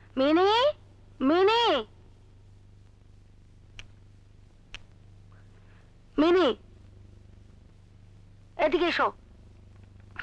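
A middle-aged woman calls out loudly several times.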